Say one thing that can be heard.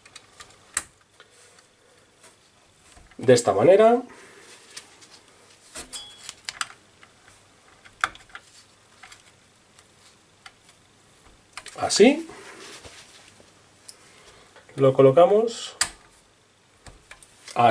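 Small plastic parts click and tap under a gloved hand.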